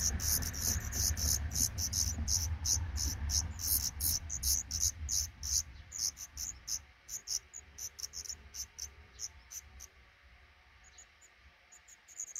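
Nestling birds cheep rapidly in high, thin chirps that grow sparser.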